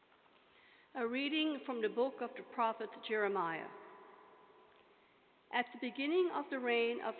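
A woman reads out calmly through a microphone.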